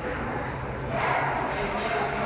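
A hockey stick clacks against a puck.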